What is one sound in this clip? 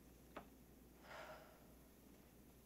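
A young woman gasps sharply close by.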